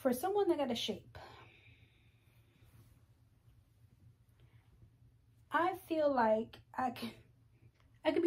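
Clothes rustle as a sweater is handled.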